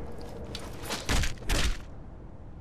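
Metal weapons strike with sharp clangs.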